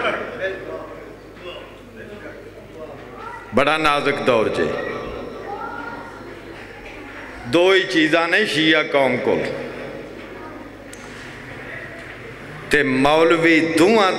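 A man speaks through a loudspeaker microphone, reciting with passion in loud, echoing bursts.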